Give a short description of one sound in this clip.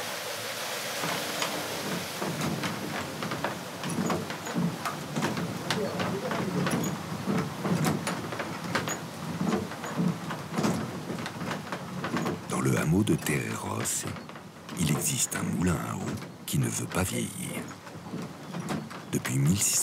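A wooden mechanism turns with rhythmic knocking and creaking.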